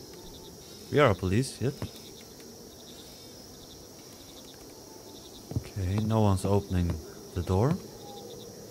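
A man speaks close to a microphone in short bursts.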